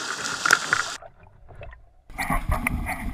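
Water gurgles, muffled, as the boat dips under a wave.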